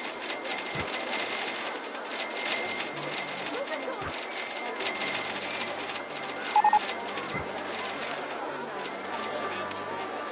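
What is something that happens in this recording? A crowd of park guests chatters and murmurs steadily.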